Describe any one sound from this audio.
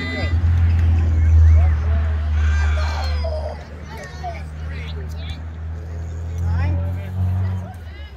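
Children call out and shout from across a ball field.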